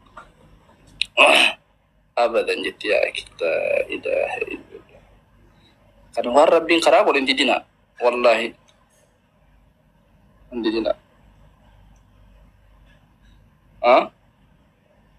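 A young man speaks casually and with animation over an online call.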